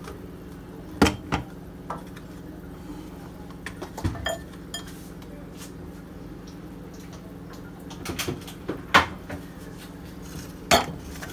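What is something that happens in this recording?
Objects knock and clink on a hard surface.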